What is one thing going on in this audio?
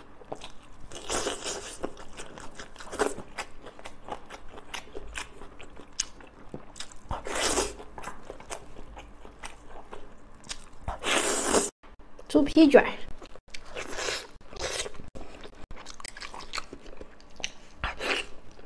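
A young woman slurps and sucks loudly on food close to a microphone.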